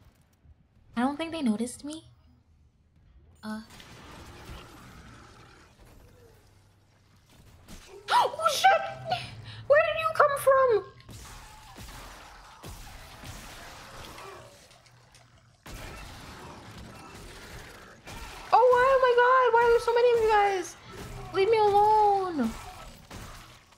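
A young woman speaks and cries out with animation through a microphone.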